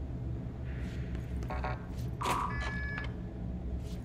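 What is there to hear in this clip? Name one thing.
A heavy metal door swings open.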